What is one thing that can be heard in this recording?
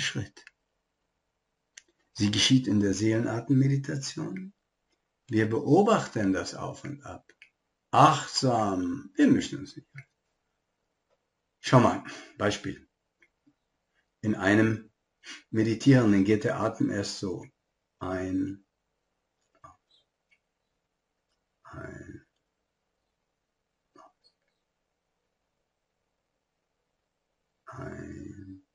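An elderly man talks calmly and close by, in bursts with pauses.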